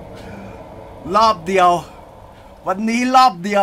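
A young man exclaims loudly and excitedly close to a microphone.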